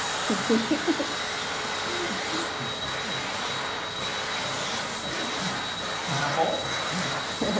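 A vacuum cleaner runs with a steady rushing whine.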